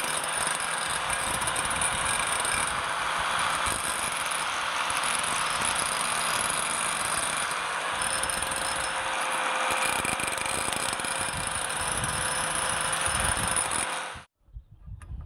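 An angle grinder whines steadily as its disc grinds against metal, then cuts off abruptly.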